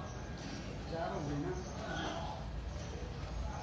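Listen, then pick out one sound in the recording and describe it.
A boy calls out nearby outdoors.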